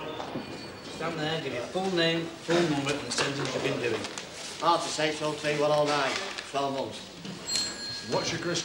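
A man speaks firmly nearby.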